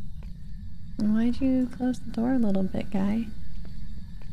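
A young woman speaks briefly and with animation into a close microphone.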